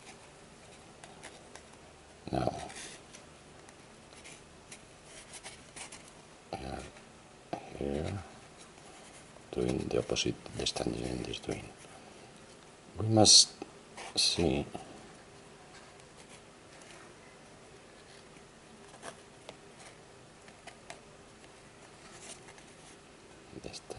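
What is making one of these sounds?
Thin cord rustles softly as hands wind and tuck it.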